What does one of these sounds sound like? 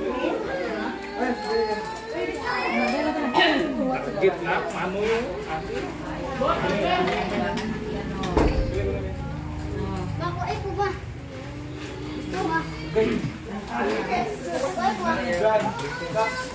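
Serving spoons clink against dishes.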